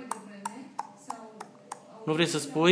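A parrot clicks its beak in quick, sharp taps.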